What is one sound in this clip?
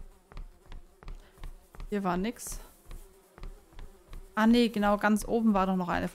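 Footsteps tap in a steady rhythm.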